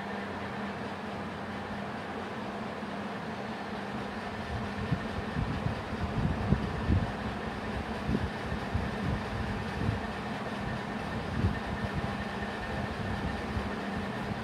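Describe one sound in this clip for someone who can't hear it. A marker taps and scrapes on a whiteboard.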